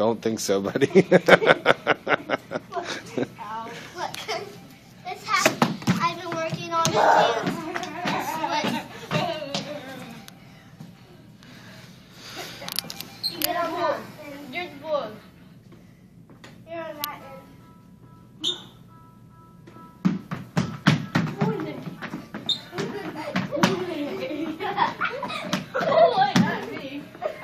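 Young children shout and laugh nearby.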